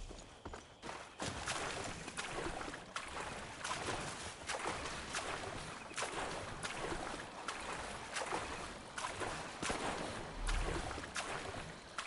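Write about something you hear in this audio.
Water splashes with steady strokes as someone swims.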